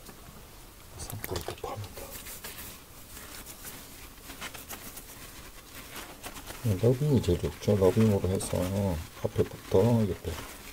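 Fingers scrub a lathered scalp with soft, squishy rubbing.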